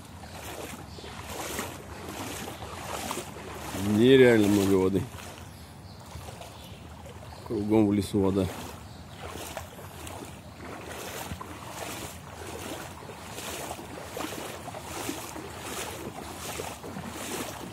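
Footsteps slosh through shallow water at a steady walking pace.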